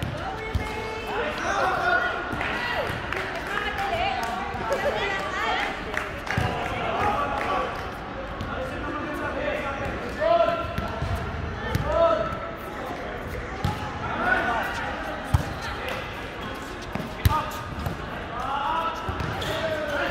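Men shout and call out to each other during a game in a large echoing hall.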